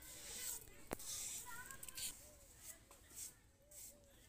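Wet clay is slapped and smeared by hand.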